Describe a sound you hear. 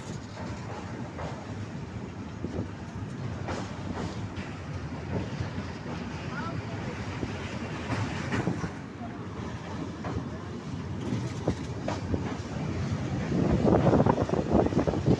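A train rumbles steadily along the tracks, with a rattling clatter that grows louder toward the end.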